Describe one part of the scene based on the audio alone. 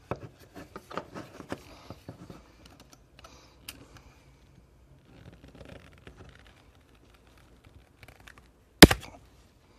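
A blade scrapes and clicks against a plastic casing.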